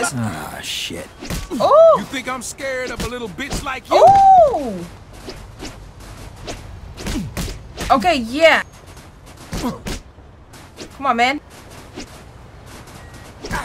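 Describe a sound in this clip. Fists thud in punches.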